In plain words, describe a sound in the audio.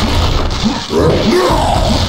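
A heavy punch thuds.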